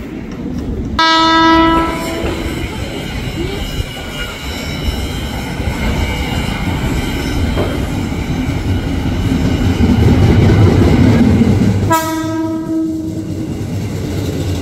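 An electric train sounds a loud horn twice.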